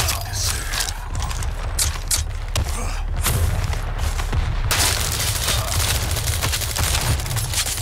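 A shotgun blasts with heavy booms.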